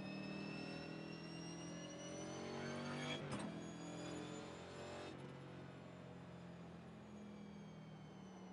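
A race car engine hums steadily at low speed.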